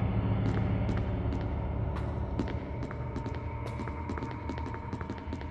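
Machines hum low and steadily.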